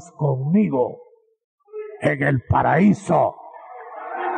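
A man speaks with emphasis through a microphone.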